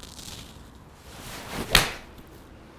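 A golf club whooshes through the air.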